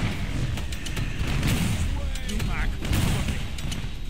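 A monster shrieks and snarls.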